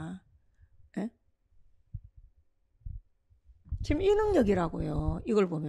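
A woman speaks clearly into a close microphone, pausing between phrases.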